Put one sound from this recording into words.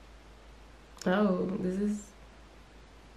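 A young woman says a few words briefly into a close microphone.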